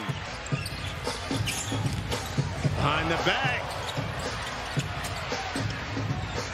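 A basketball bounces steadily on a hardwood court.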